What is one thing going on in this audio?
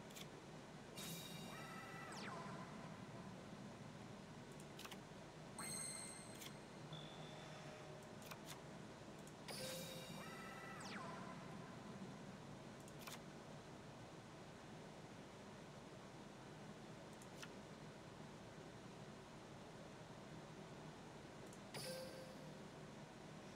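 Short electronic game chimes and whooshes ring out now and then.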